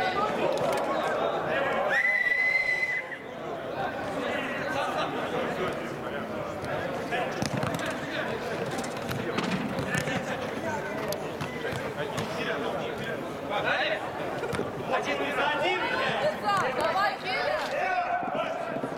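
Men shout and call out across a large echoing hall.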